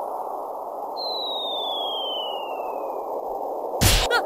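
A whistle glides down in pitch.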